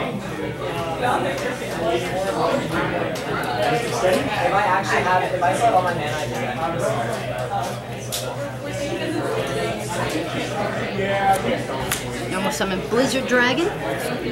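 Playing cards slide and tap softly on a table.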